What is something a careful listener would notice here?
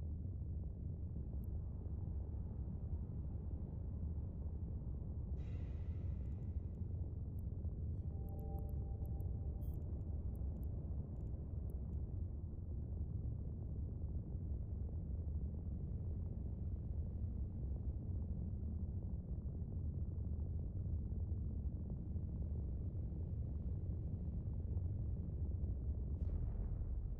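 A deep, steady engine rumble drones throughout.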